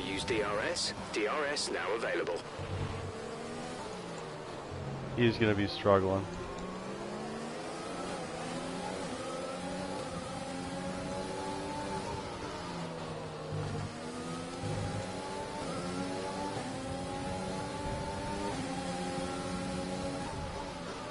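A racing car engine whines loudly, rising and falling in pitch as it speeds up and brakes.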